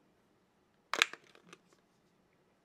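A plastic phone cover snaps and clicks as it is pried off.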